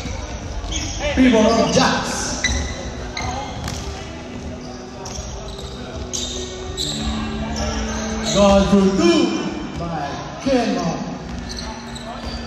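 Men shout and call out loudly across the court.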